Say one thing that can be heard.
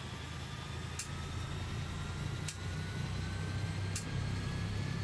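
A switch clicks several times.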